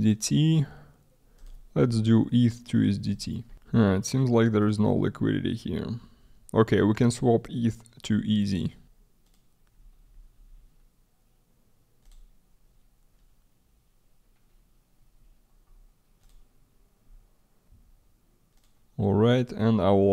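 A young man talks calmly and closely into a microphone, pausing now and then.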